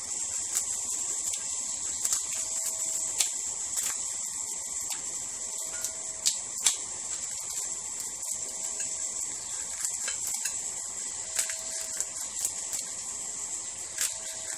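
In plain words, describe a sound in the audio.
A knife scrapes and clicks against a ceramic plate.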